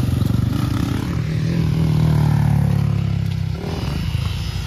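A second dirt bike engine drones closer and then rides past.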